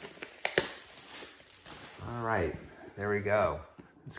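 A cardboard box is set down on a wooden surface.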